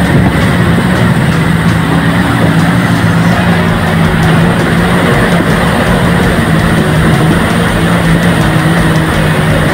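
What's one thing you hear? A motorboat engine drones steadily at close range.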